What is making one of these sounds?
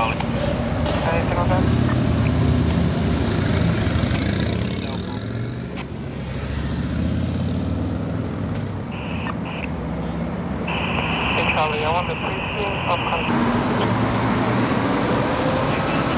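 Traffic roars past steadily on a busy road.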